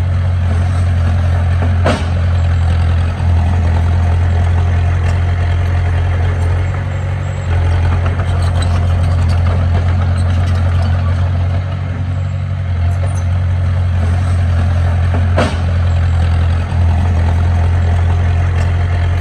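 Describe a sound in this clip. A bulldozer's metal tracks clank and squeak as it pushes soil.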